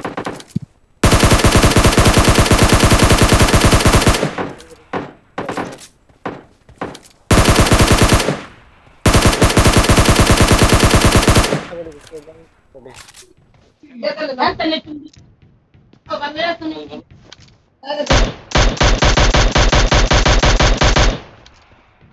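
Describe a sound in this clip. A rifle fires in rapid bursts of automatic shots.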